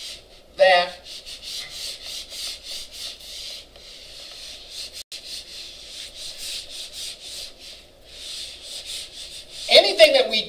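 An eraser rubs back and forth across a whiteboard.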